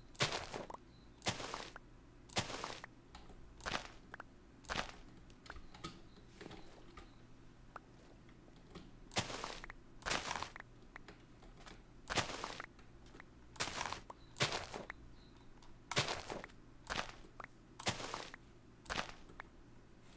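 Plant stalks snap and rustle in short, repeated bursts as they are broken.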